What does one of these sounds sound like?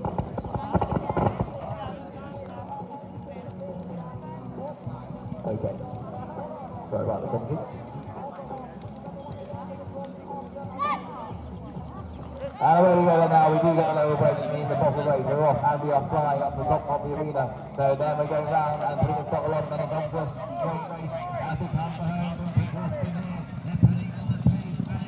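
Horses canter with soft hoofbeats on sand.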